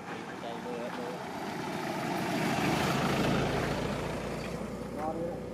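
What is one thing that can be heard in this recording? A small truck drives past close by on a road.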